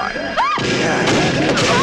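A young woman screams in anguish close by.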